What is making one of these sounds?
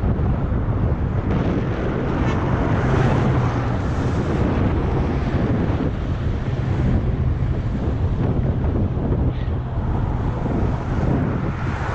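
Wind buffets loudly in a steady, rushing roar outdoors.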